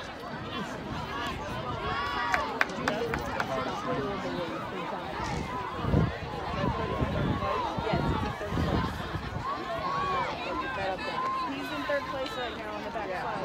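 A crowd of young people chatter and call out outdoors.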